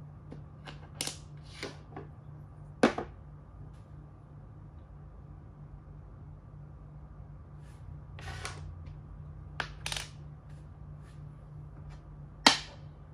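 Game pieces click and tap against a wooden board.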